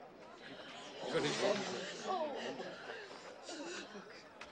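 A crowd of people murmurs and cries out in the distance.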